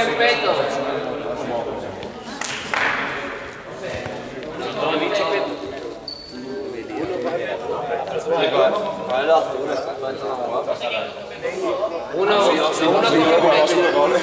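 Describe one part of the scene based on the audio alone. Young men and women talk and chatter together in a large echoing gym.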